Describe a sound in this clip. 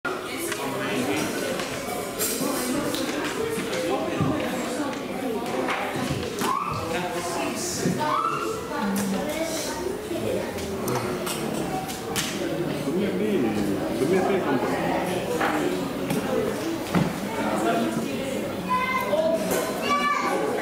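A crowd of men and women chatter and murmur indoors.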